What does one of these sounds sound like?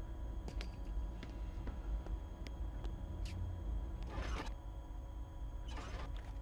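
Footsteps tap lightly on a metal floor.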